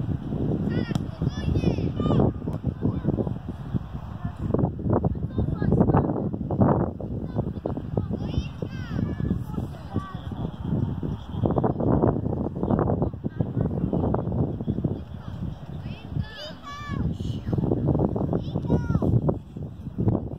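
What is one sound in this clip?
Children shout and call to each other across an open field.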